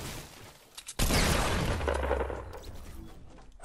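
A loud gunshot bangs and echoes away.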